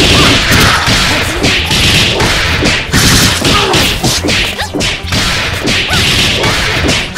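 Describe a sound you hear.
Blows land with sharp, rapid smacks.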